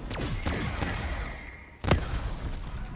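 A ray gun fires with a sharp electric zap.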